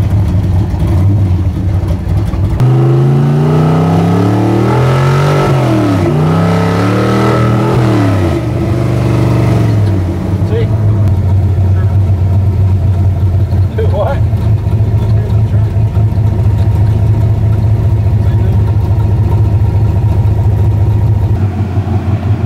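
A car engine roars from inside the cabin, revving up through the gears.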